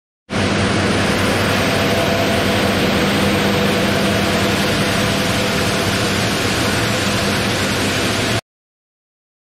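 A large stone-cutting saw grinds loudly and steadily through rock.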